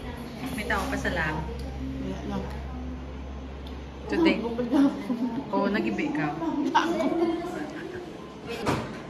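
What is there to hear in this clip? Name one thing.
A young woman talks expressively up close.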